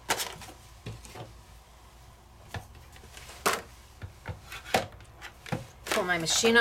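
A stiff card taps and rustles against a hard tabletop.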